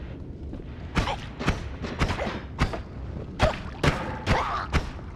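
Sharp bursts of game sound effects pop in quick succession.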